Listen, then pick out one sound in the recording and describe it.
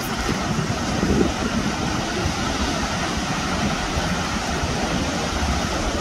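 Waves break and roll onto the shore in a steady roar.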